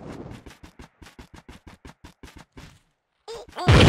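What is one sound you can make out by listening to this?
A spinning blade whooshes in quick repeated swipes.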